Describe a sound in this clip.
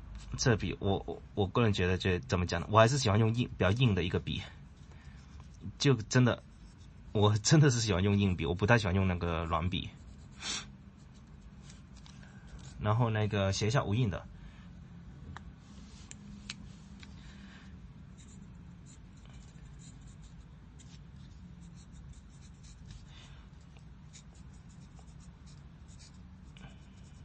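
A pen nib scratches softly on paper.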